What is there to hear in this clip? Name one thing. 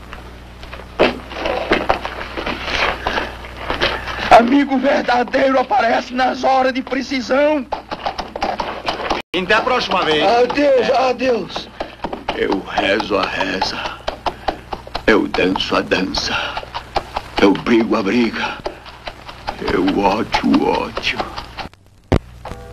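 A man speaks pleadingly and with emotion, close by.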